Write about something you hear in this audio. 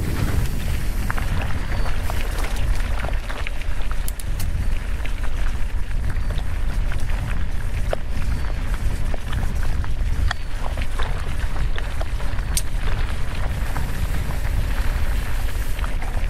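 A bicycle frame clicks and rattles over bumps.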